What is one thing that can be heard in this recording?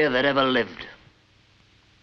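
A man speaks firmly and close by.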